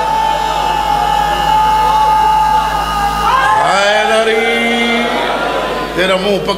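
A man sings loudly and with feeling through a microphone, with echo.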